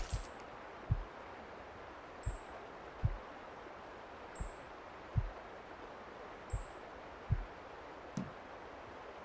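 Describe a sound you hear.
Soft menu clicks sound at a steady pace.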